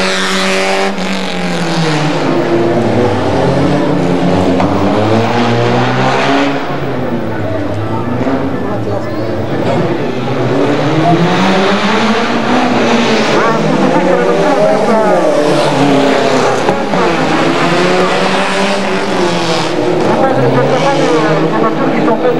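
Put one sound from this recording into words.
A racing car engine revs loudly and rises and falls in pitch as the car speeds past.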